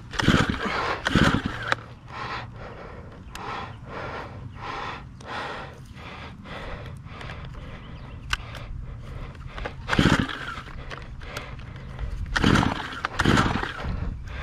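A petrol trimmer engine revs loudly in short bursts.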